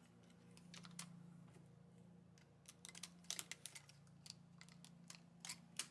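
Small plastic and metal clicks come from a hand tool tapping needles.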